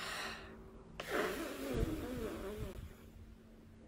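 A young woman makes breathy, humming vocal sounds close to a microphone.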